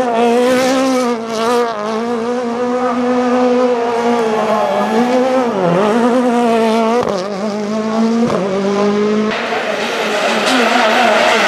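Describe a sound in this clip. A rally car engine roars and revs hard close by.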